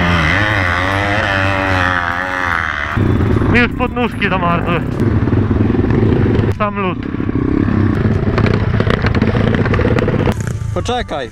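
Dirt bike engines rev and roar loudly close by.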